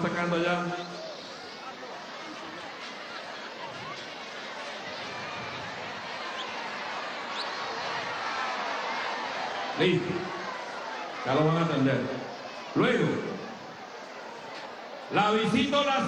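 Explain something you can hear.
A large outdoor crowd murmurs and cheers.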